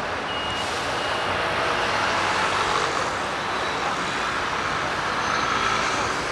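Motor scooters buzz past.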